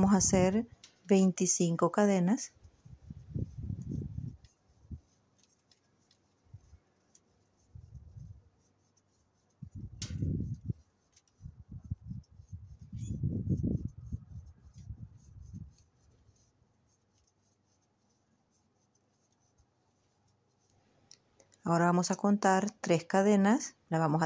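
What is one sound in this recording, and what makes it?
Yarn rustles softly as a crochet hook works it.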